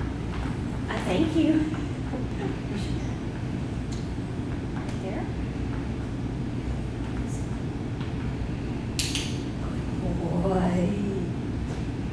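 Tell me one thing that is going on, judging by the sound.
A woman speaks to a dog in a bright, encouraging voice.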